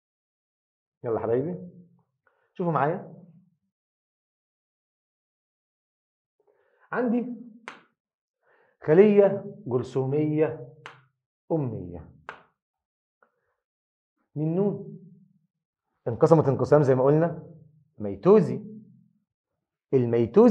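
A middle-aged man explains calmly into a close microphone, in short bursts with pauses.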